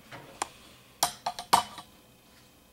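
A knob clicks as a hand handles it.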